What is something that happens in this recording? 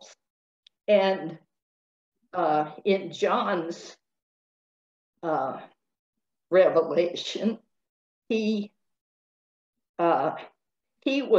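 An elderly woman speaks with animation over an online call, in short bursts with pauses.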